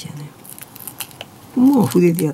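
A small plastic part clicks as it is handled.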